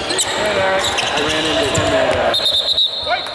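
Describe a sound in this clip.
Young men shout and call out in a large echoing hall.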